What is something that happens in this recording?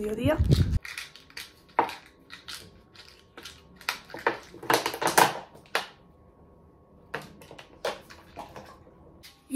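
A plastic bottle crinkles and its cap clicks open.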